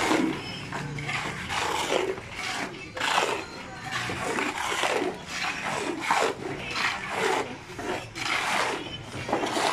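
A shovel scrapes through wet concrete.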